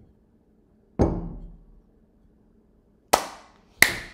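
A young woman claps her hands loudly, with a short echo.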